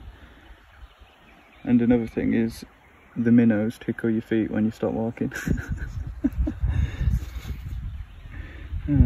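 Shallow river water gently laps and trickles.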